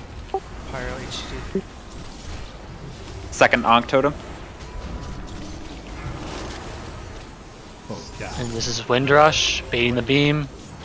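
Magical spell effects whoosh and chime in a game battle.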